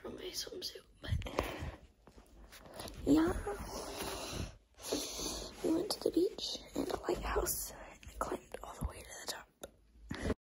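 A young girl makes loud silly noises up close.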